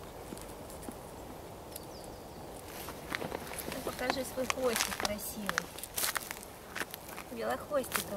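Dry leaves rustle under a squirrel's paws.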